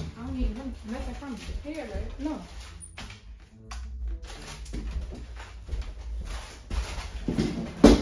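Footsteps cross a wooden floor.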